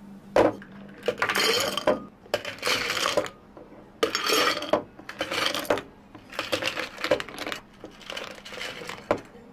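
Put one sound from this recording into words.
Ice cubes clatter and clink into glass jars.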